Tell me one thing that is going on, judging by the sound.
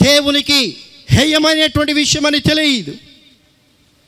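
A young man preaches loudly and with animation into a microphone, with a slight echo.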